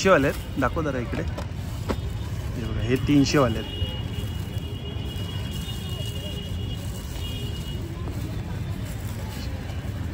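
Cloth rustles as a hand turns folded fabric.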